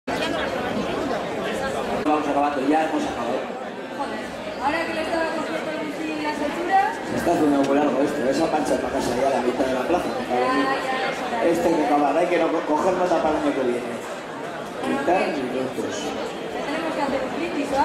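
A young man speaks with animation on a stage in a large hall.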